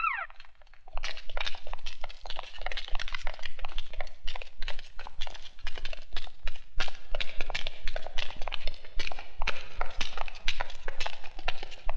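Boots tramp quickly on stone steps.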